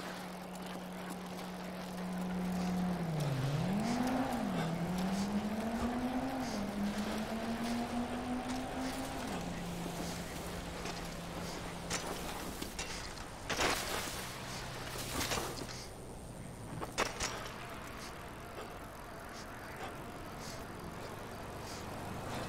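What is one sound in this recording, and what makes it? Bicycle tyres roll over gravel and then smooth pavement.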